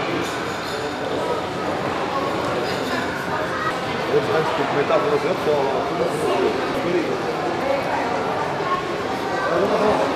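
Men talk nearby amid the murmur of a busy indoor crowd.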